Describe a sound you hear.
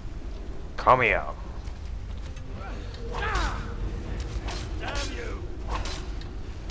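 Metal blades clash in a fight.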